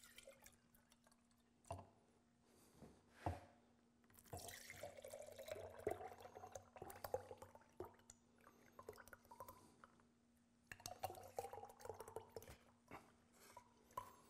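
Thick liquid pours into a glass jar.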